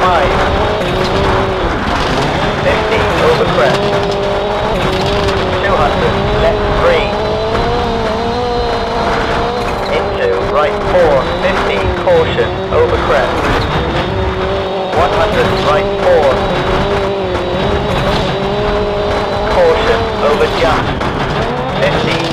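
Tyres crunch and skid on loose gravel.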